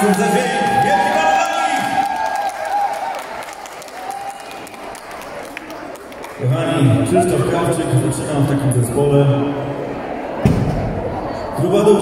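A live band plays a lively song through loudspeakers in a large echoing hall.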